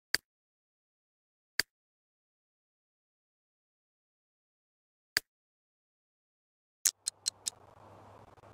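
Short game interface clicks sound now and then.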